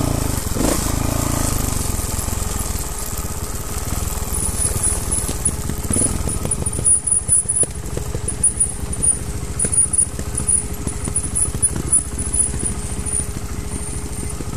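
Bike tyres rumble and crunch over a bumpy dirt trail.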